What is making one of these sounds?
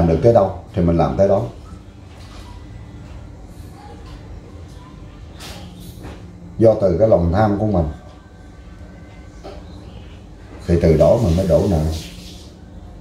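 A middle-aged man speaks earnestly up close, in short bursts.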